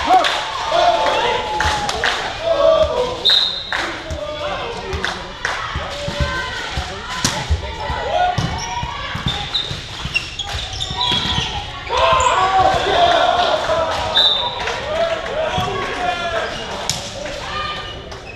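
A volleyball thuds as it is hit.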